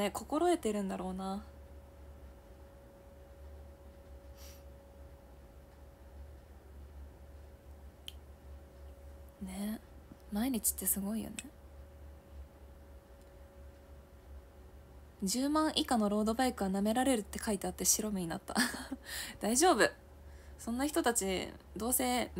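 A young woman talks calmly and close to a microphone, with long pauses.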